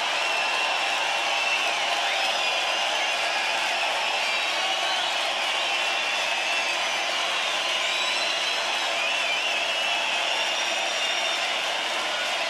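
A crowd whistles shrilly.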